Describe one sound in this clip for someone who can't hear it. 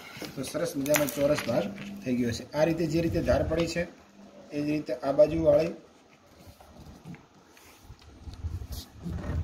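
Paper rustles and creases as it is folded.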